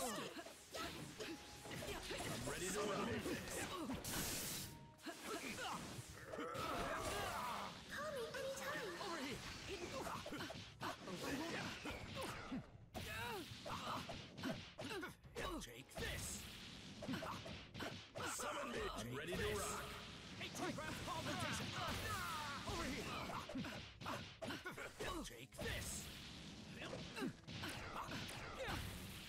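Fighters' fast moves whoosh through the air.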